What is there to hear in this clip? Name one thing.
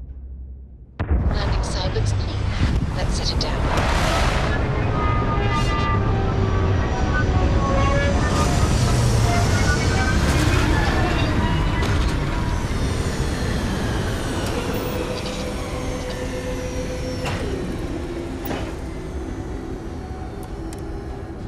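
A spacecraft's engines roar loudly as the craft descends and lands, then slowly fade.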